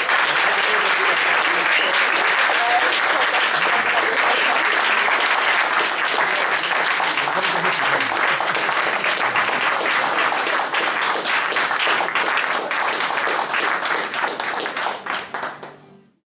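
An acoustic guitar is strummed steadily in a room.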